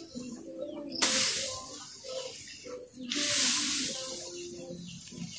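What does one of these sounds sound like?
Dry grass rustles as it is pulled and tossed onto a pile.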